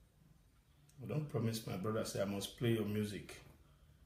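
A man speaks calmly and close to a phone microphone.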